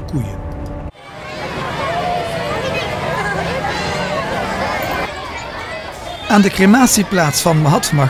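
A crowd of children chatters loudly outdoors.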